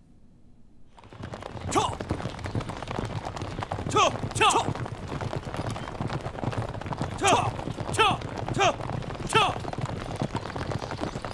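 Horses gallop with pounding hooves.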